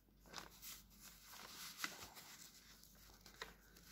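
A sheet of paper rustles under a hand.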